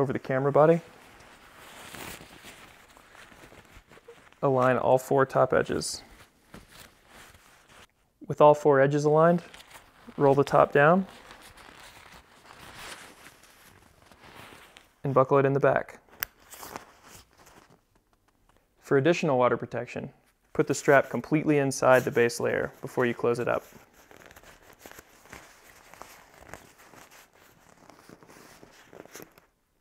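A thin nylon bag rustles and crinkles as it is folded and rolled.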